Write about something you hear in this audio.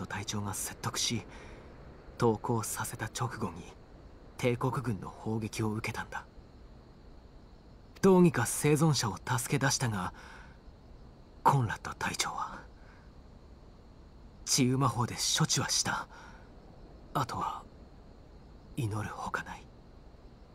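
A young man speaks calmly and quietly.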